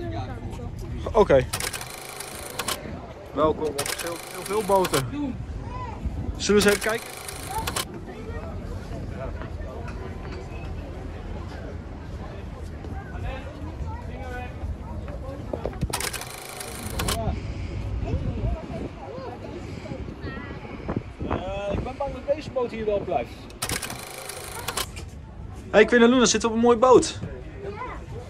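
Several adults chat nearby in a crowd outdoors.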